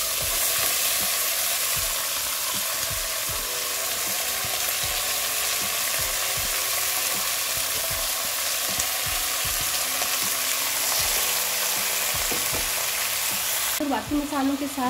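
Food sizzles and crackles in a hot pot.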